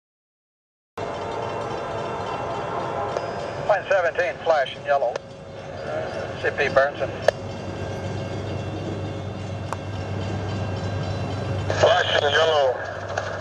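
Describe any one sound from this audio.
A train engine rumbles steadily in the distance.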